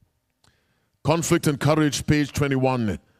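A man speaks forcefully into a microphone, heard through a loudspeaker.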